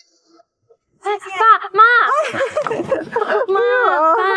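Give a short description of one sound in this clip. A woman laughs with excitement.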